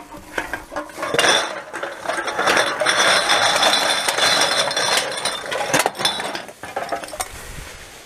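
Cans and bottles clatter and rattle as they are poured out of a plastic bag.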